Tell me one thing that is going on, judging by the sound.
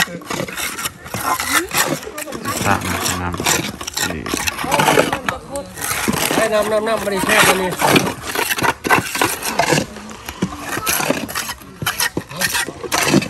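Several men talk with one another nearby, outdoors.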